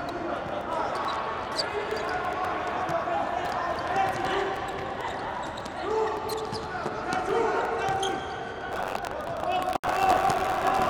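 A ball is kicked sharply on a hard indoor court.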